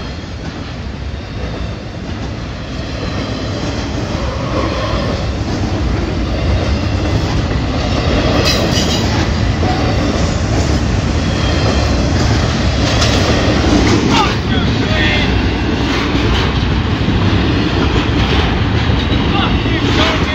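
A freight train rumbles past close by, growing louder.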